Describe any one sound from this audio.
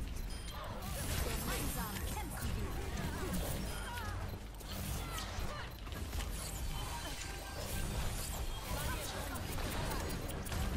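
An energy gun zaps and crackles in rapid bursts.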